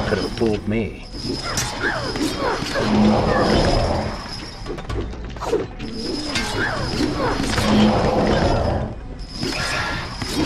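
Swords swish and clash in a fight.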